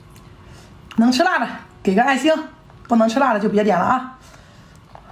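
A young woman speaks brightly and close to the microphone.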